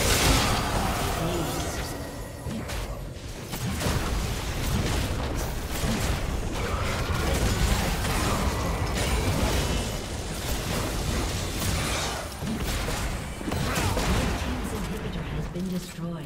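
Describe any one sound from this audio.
Game spells blast and crackle in a busy battle.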